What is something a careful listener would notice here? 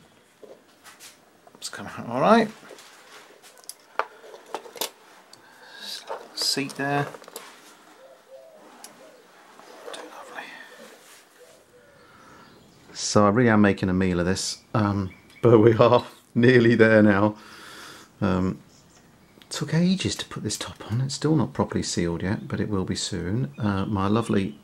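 Small metal toy parts click and rattle as they are handled.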